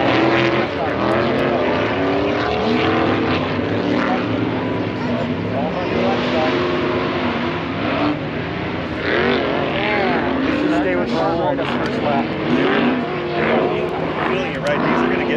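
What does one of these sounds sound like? Dirt bike engines rev and whine in the distance.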